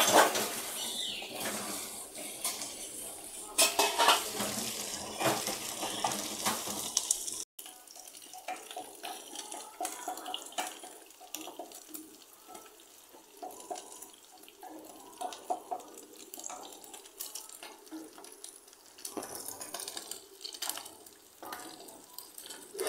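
Fish sizzles and crackles in hot oil in a pan.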